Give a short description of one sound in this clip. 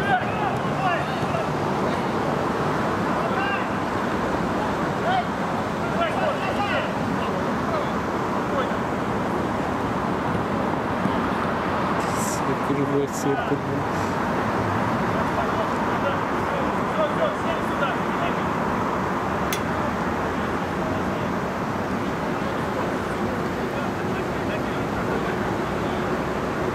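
A crowd of spectators chatters and calls out nearby outdoors.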